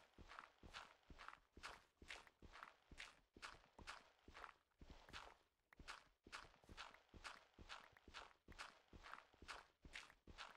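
Blocks of dirt crunch and break in quick, regular succession.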